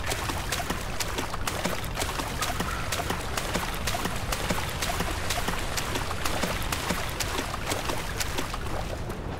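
Quick footsteps patter on a stone floor.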